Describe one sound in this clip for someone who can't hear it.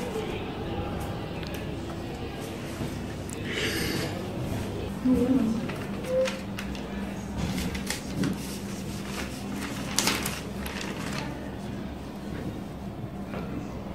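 Newspaper pages rustle and crinkle as they are turned.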